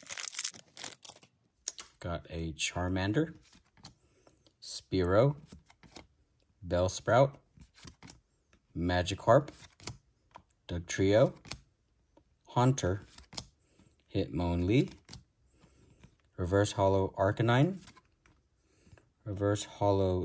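Trading cards slide and rustle against each other in a pair of hands.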